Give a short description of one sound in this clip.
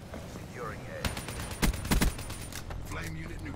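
Rifle shots fire in quick bursts.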